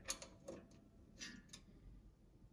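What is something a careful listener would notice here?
A coin drops into a box with a short clink.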